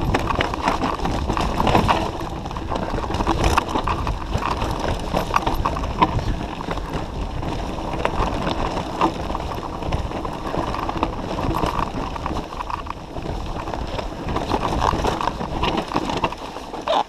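A bicycle frame clatters and rattles over bumps.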